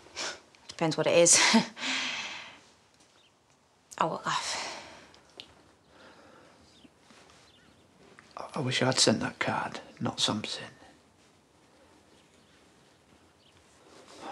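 A woman speaks quietly and firmly, close by.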